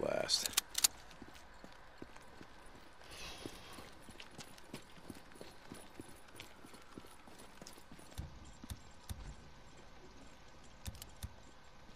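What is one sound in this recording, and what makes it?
Footsteps thud steadily on pavement.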